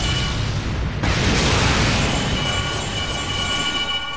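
An energy blast roars and crackles.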